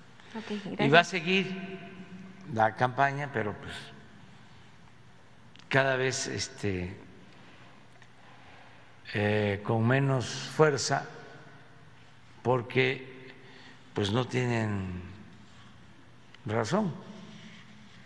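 An elderly man speaks slowly and calmly into a microphone, pausing often.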